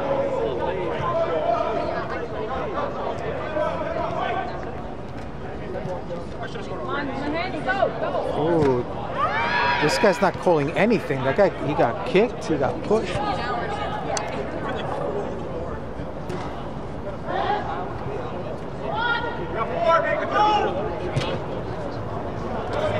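Young men shout and call out to each other in a large echoing hall.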